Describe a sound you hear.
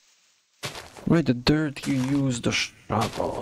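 A young man speaks close to a microphone with animation.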